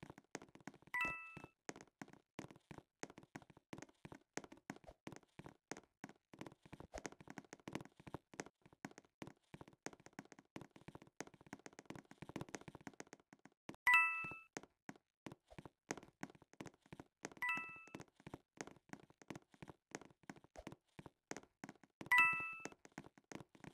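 A bright chime rings out as a coin is collected in a game.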